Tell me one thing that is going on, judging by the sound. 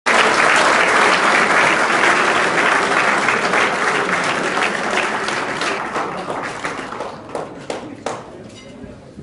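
A crowd applauds loudly in a large room, and the applause slowly fades away.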